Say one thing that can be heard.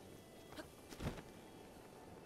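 A glider cloth snaps open with a sudden whoosh.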